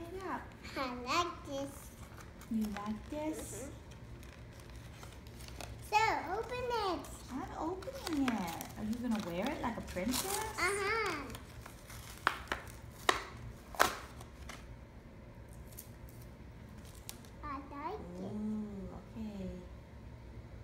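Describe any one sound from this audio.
A little girl talks and babbles close by, with animation.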